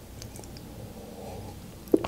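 A young woman sips a drink from a mug.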